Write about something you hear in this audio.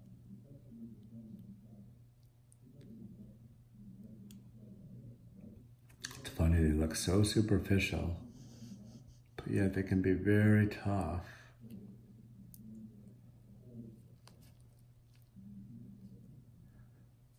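Small surgical scissors snip softly close by.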